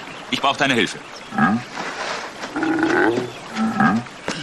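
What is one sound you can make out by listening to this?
A bear growls and grunts.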